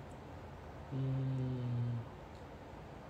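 A young man hums briefly close to a microphone.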